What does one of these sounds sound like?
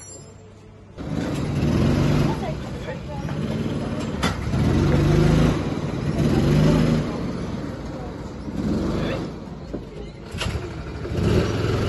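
Go-kart engines rumble and rev nearby.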